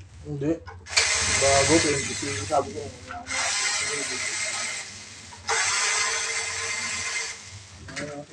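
A power screwdriver whirs in short bursts.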